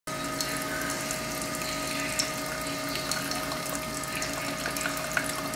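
Coffee trickles and splashes into a mug.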